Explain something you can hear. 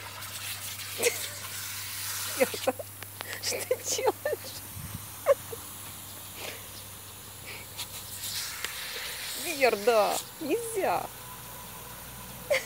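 A lawn sprinkler hisses as it sprays water.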